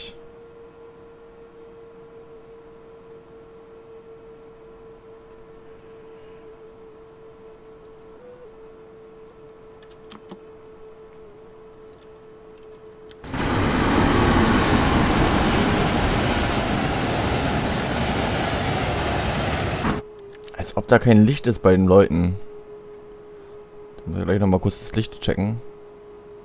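A train's motor hums steadily.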